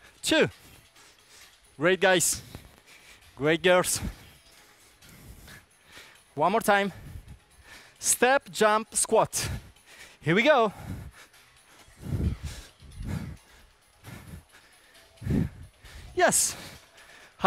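A man calls out cues with animation.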